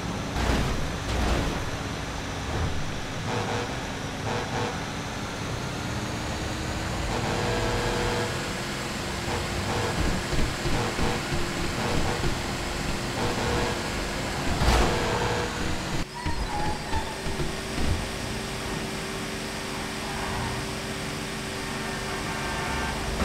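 A heavy truck engine rumbles steadily as it drives along a road.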